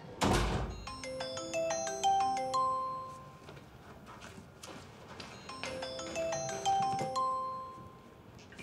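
A mobile phone plays a ringing melody.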